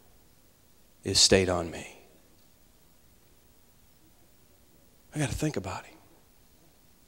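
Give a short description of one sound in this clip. A man speaks through a microphone in a large echoing hall, in short bursts with pauses.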